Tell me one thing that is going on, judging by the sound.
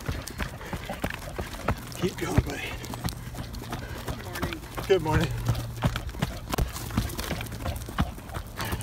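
A dog's paws patter on dirt as it trots.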